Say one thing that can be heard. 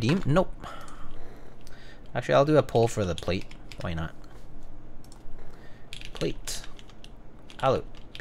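Keys clack as someone types on a mechanical keyboard.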